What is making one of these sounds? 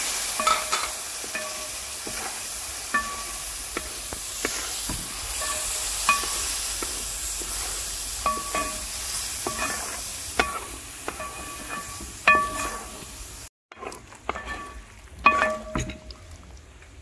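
A wooden ladle scrapes and knocks against a metal pot.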